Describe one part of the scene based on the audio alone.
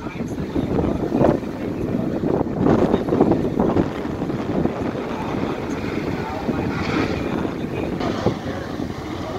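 A drag racing car's engine roars through a burnout.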